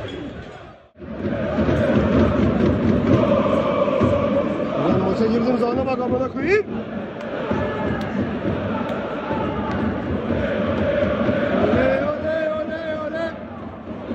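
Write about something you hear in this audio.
A large crowd chants and sings loudly in an echoing stadium.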